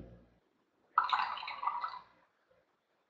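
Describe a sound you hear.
A woman sips through a straw.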